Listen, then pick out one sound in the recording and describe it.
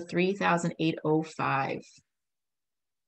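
A young woman speaks calmly through an online call microphone.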